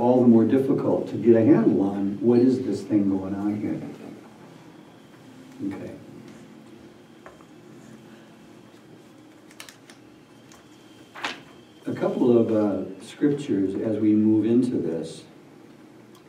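A middle-aged man speaks calmly and clearly close by.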